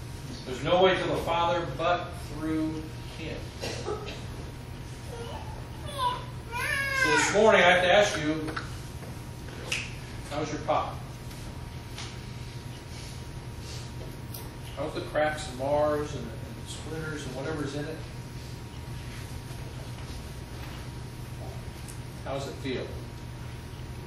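A middle-aged man speaks with animation.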